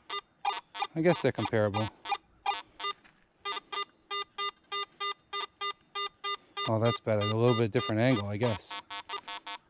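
A metal detector gives a loud, wavering, warbling tone.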